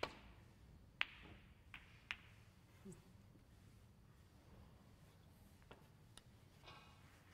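Snooker balls clack against each other.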